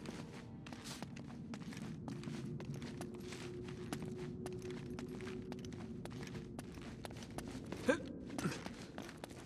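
A game character's footsteps fall on a stone floor.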